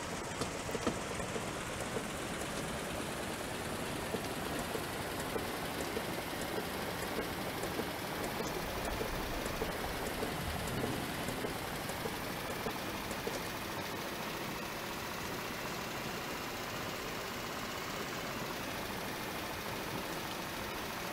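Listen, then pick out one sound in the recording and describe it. Windshield wipers sweep back and forth.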